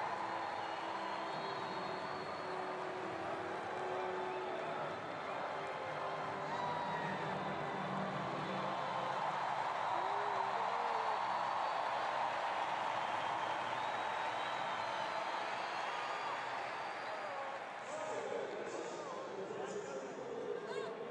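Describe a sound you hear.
A large stadium crowd cheers and chatters in a wide echoing space.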